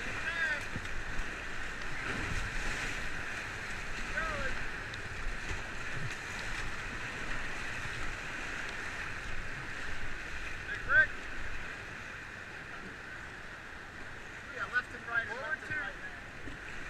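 Paddles splash and dig into the water.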